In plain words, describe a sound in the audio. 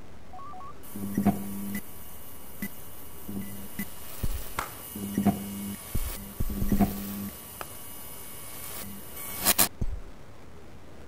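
Electronic game tones beep and chime in short bursts.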